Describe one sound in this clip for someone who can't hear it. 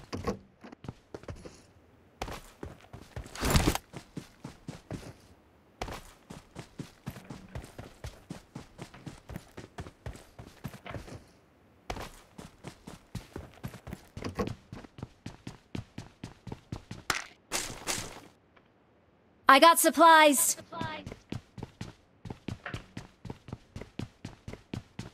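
Footsteps thud quickly and steadily on the ground.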